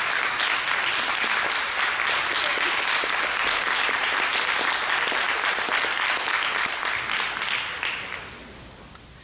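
Loud applause fills a large echoing hall, then dies away.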